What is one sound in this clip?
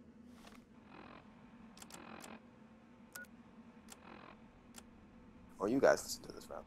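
A handheld device clicks and beeps as its menus are flipped through.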